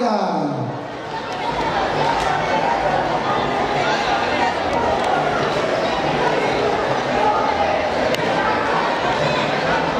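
A large crowd chatters and murmurs.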